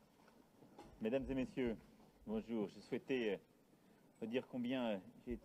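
A middle-aged man speaks calmly into microphones close by, outdoors.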